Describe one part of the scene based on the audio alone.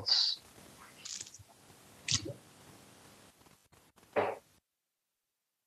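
A middle-aged man speaks in short bursts over an online call.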